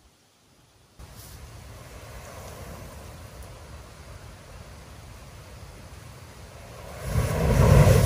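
A burning device hisses steadily.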